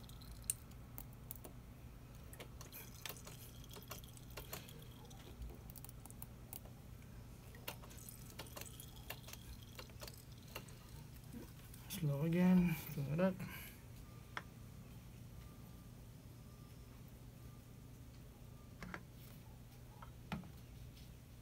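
Small metal parts click and tap under a hand.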